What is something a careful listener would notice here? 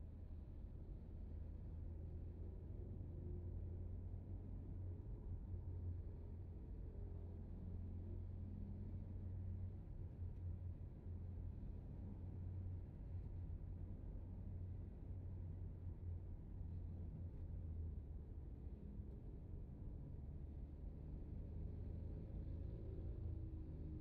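Motorbike engines buzz nearby in traffic.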